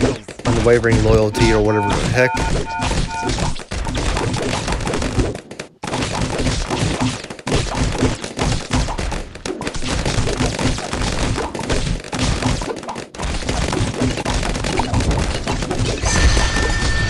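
Cartoon balloons pop in quick bursts.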